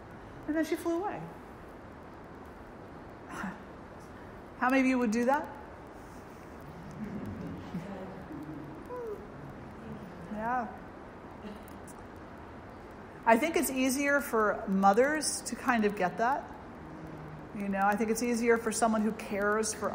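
An elderly woman speaks calmly into a microphone, with pauses.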